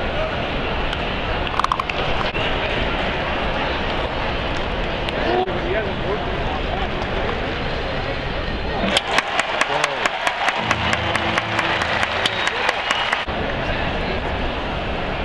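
A stadium crowd murmurs steadily in the open air.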